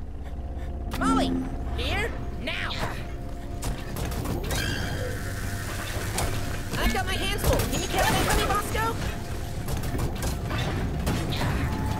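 A futuristic gun fires with electronic zaps and warbling chirps.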